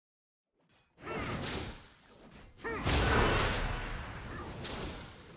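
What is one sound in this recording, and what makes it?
Magic spells whoosh and crackle in a fight.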